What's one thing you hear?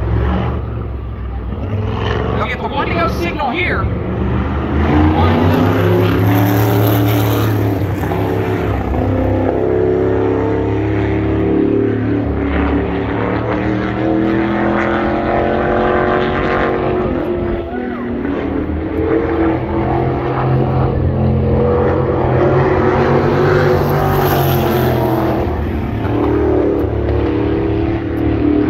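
Racing engines roar loudly around an outdoor track, rising and falling in pitch as they pass.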